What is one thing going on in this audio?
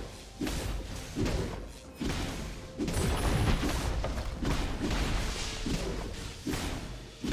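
Weapon blows thud heavily again and again.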